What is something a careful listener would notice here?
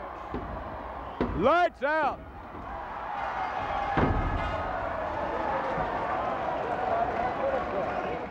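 A crowd cheers and shouts in a large echoing arena.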